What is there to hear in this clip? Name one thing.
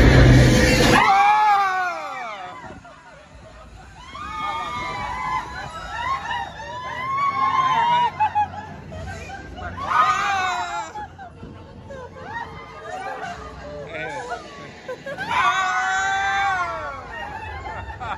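Young women scream and laugh close by.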